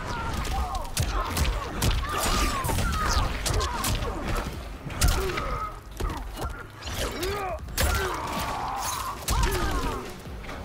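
Electricity crackles and buzzes in bursts.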